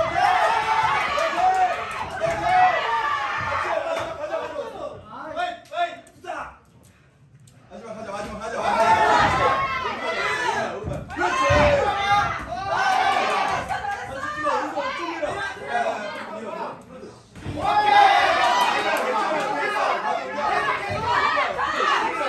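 Several people shout and cheer loudly from close by.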